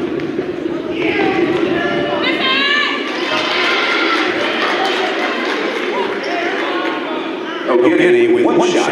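Young men shout to each other across a court.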